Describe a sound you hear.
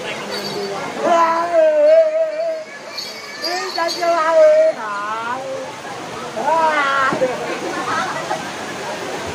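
A man chants loudly in a long, wavering voice close by.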